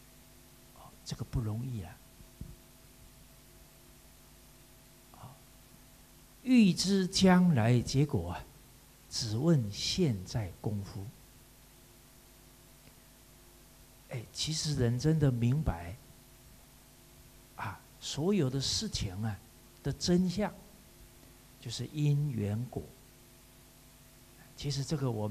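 A middle-aged man speaks calmly into a microphone, in bursts with pauses, over a loudspeaker.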